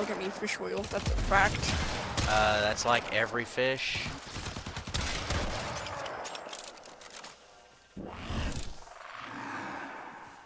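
Gunshots and blasts crack in rapid bursts.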